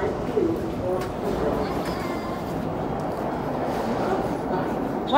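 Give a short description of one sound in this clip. Adults murmur and chatter nearby in a crowd.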